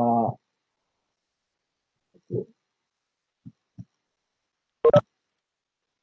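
A man speaks briefly over an online call, with long pauses.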